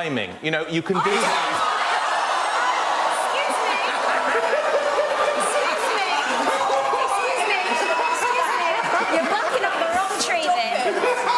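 A large audience cheers and laughs.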